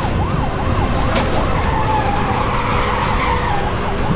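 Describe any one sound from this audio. Tyres skid and crunch on gravel.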